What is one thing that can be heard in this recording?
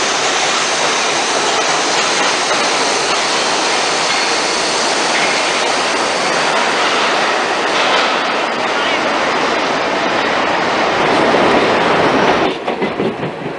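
A subway train rumbles and roars loudly along the tracks.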